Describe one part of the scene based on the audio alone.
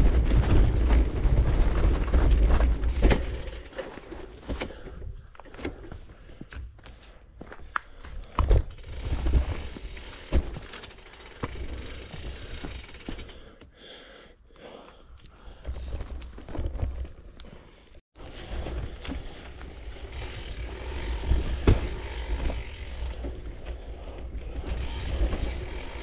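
Bicycle tyres crunch and roll over a dirt trail.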